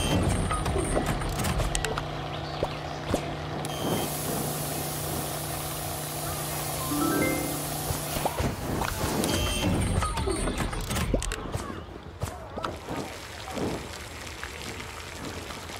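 Cartoon cooking sound effects clatter and clink.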